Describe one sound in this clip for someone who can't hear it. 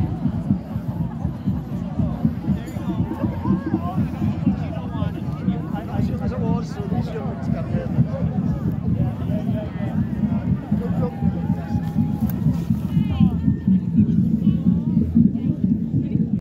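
A crowd of people chatters in the distance.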